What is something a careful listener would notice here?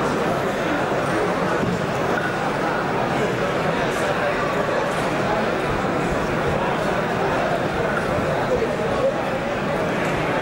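A crowd chatters and murmurs steadily in a large echoing hall.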